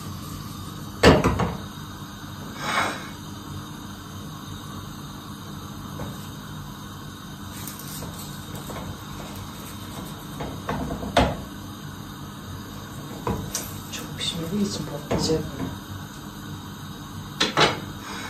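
Kitchen utensils clink and knock against dishes.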